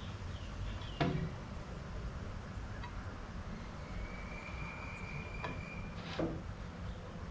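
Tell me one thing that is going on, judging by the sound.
Ceramic tiles click and tap against a wooden tabletop.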